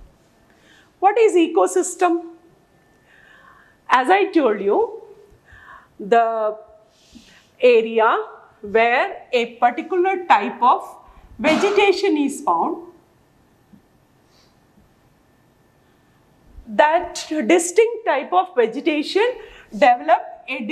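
A woman speaks calmly and clearly into a clip-on microphone, as if teaching.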